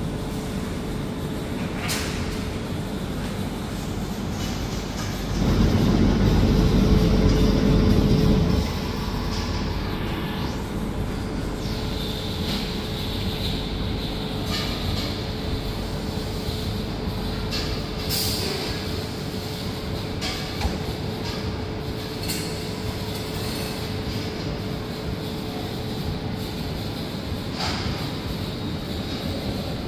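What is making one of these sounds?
A robotic arm whirs softly as it moves.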